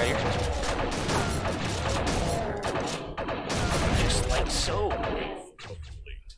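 Gunshots boom in a video game.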